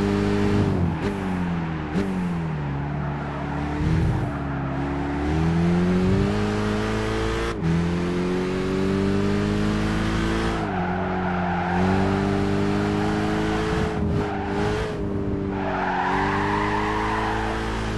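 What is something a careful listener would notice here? A car engine revs high and drops as gears shift.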